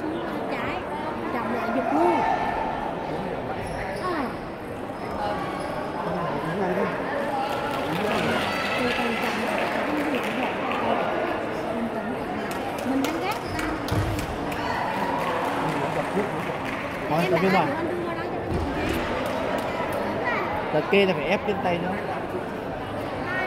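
Several adults talk at a distance in a large echoing hall.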